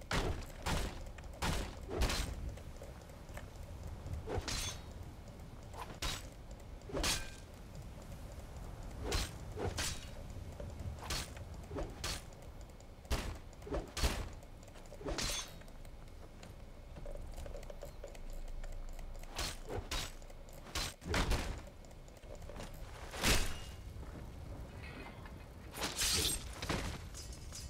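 Swords clash and strike again and again in a fight.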